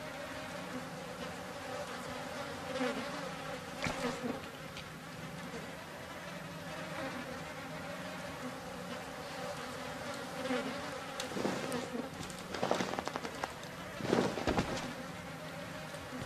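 A fluorescent tube hums steadily.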